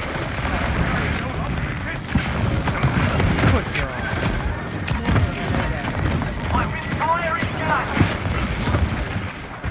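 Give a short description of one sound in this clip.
A video game gun fires in rapid bursts.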